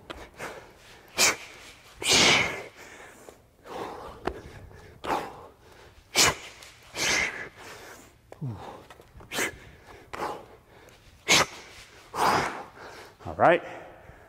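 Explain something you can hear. A man exhales sharply with each effort.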